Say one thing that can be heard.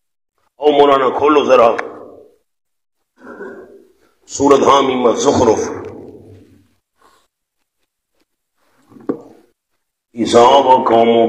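A man preaches loudly with animation through a microphone.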